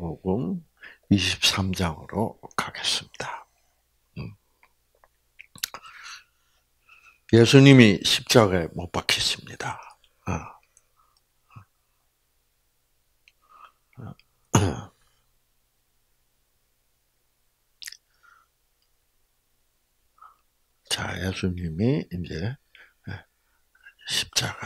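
An elderly man speaks into a microphone in a slow, preaching manner, with long pauses.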